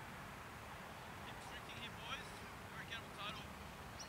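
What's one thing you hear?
A cricket bat strikes a ball with a distant knock.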